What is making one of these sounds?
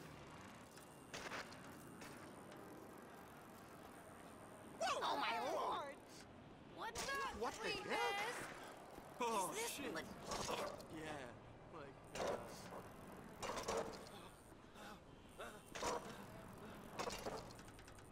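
Bicycle tyres roll over pavement.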